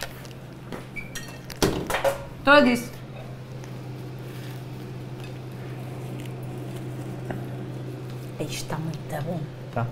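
Utensils clink against a pan.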